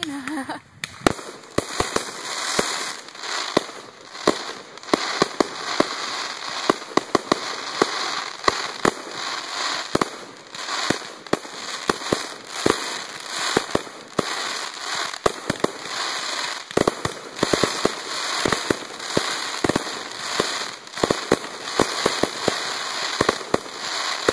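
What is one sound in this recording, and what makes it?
Fireworks crackle and fizz steadily.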